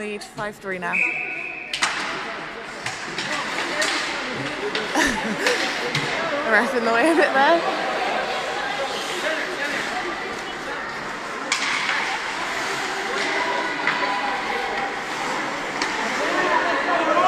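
Skates scrape and hiss on ice.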